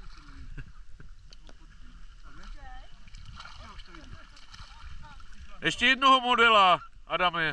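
Water splashes and laps around people wading.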